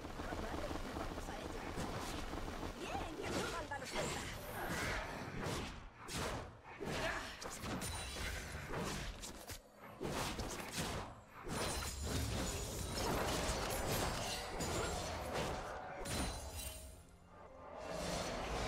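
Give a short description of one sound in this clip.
Game spell effects and hits crackle and clash in a fight.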